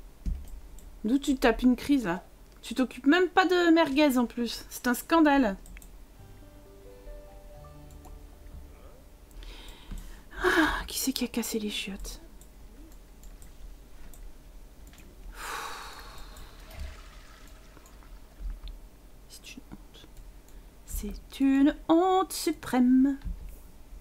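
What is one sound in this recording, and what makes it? A young woman talks with animation into a headset microphone.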